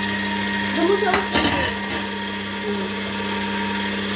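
Fruit drops into a juicer chute with a short thud.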